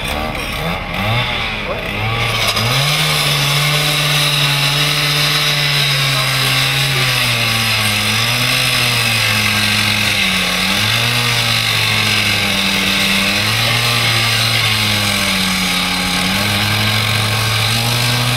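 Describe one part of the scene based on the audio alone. A petrol disc cutter engine roars and revs up and down.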